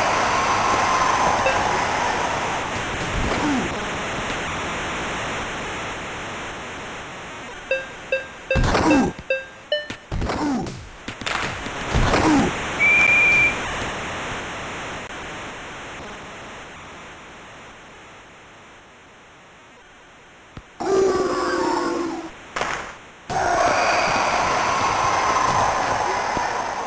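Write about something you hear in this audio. A crowd cheers in a large arena.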